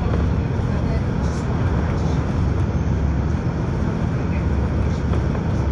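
A heavy vehicle's engine rumbles steadily from close by.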